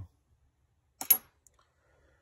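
Small metal lock parts click sharply together.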